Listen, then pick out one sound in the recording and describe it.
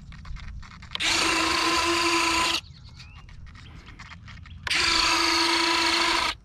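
A small electric jet fan whines loudly in short bursts.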